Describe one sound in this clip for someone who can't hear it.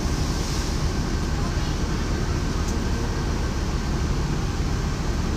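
A bus engine rumbles steadily while the bus drives.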